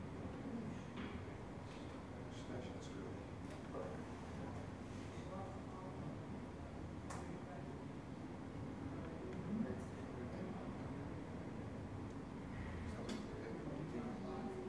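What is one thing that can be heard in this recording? A young man talks quietly in a room with a slight echo.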